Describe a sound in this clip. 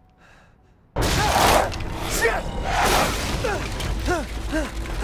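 A man cries out in pain and curses.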